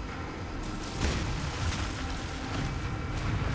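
Gunfire and explosions rumble as warships clash in a battle.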